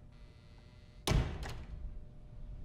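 A door slams shut.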